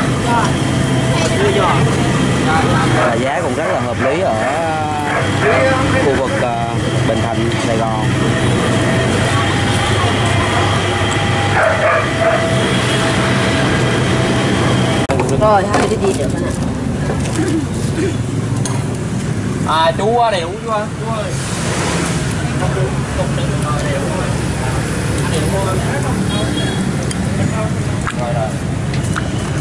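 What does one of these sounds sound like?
Motorbikes pass by on a busy street.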